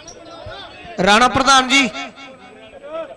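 A crowd of men cheers loudly.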